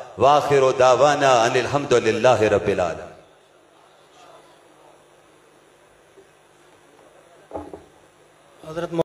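A man chants melodiously into a microphone, heard through loudspeakers in an echoing hall.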